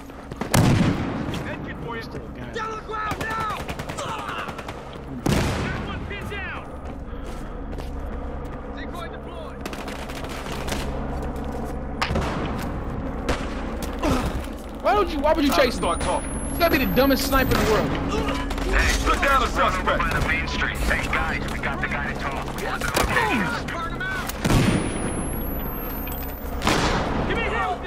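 Gunshots crack loudly nearby.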